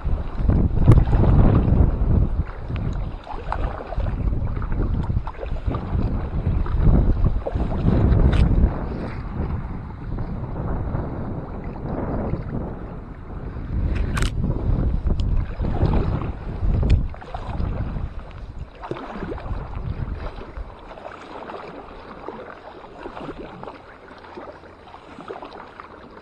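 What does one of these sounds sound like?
Water splashes as a kayak paddle dips and pulls.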